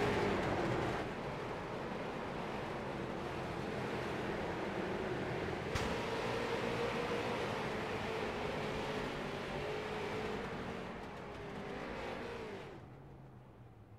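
Several race car engines drone past on a track.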